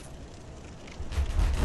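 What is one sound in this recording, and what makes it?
A heavy stone door rumbles as it is pushed open.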